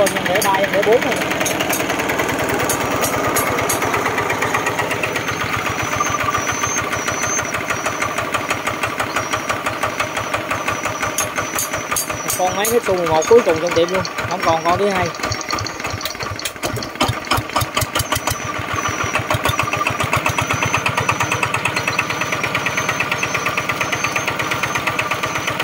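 A small diesel engine runs with a fast, steady chugging close by.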